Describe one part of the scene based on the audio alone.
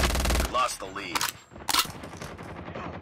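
A gun's magazine is reloaded with metallic clicks.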